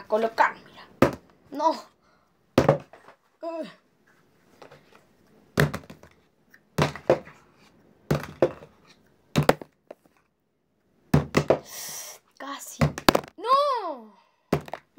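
A plastic bottle crinkles and thumps in a boy's hands.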